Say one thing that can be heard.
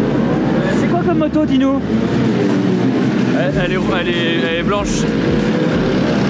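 A young man speaks cheerfully close by.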